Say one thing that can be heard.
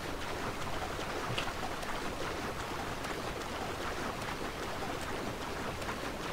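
Water splashes rhythmically as a swimmer strokes through it.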